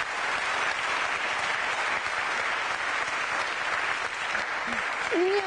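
An audience claps steadily nearby.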